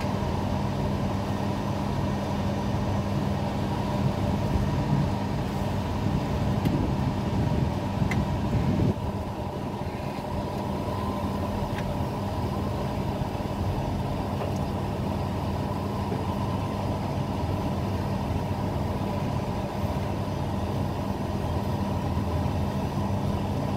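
Wind blows in gusts high up outdoors.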